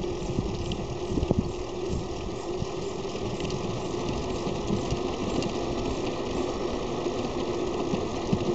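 Wind rumbles and buffets steadily.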